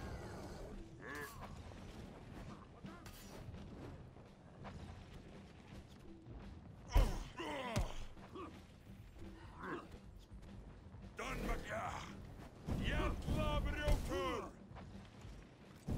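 Metal blades clash and ring sharply.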